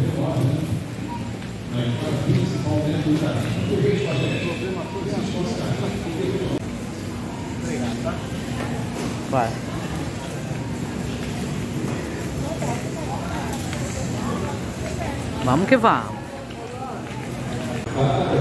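A crowd murmurs faintly in a large echoing hall.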